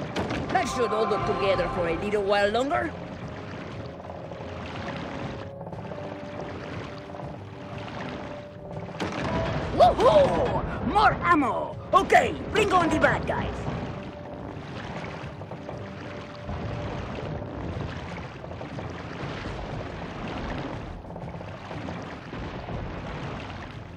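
A small propeller-driven boat speeds across water with its wake rushing.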